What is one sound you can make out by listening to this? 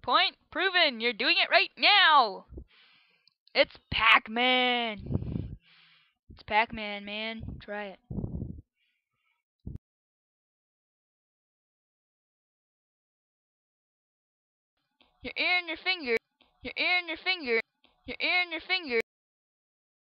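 A teenage girl talks with animation into a headset microphone, close by.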